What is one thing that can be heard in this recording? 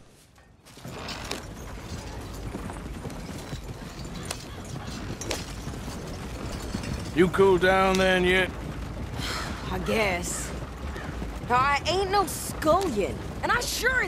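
Wagon wheels rattle and creak over rough ground.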